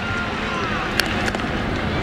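A baseball pops sharply into a catcher's mitt.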